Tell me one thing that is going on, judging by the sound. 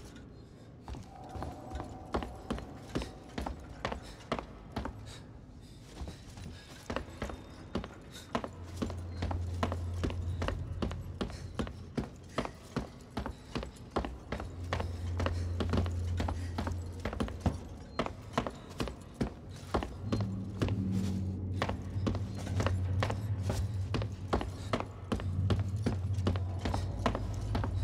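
Footsteps walk steadily across a hard metal floor.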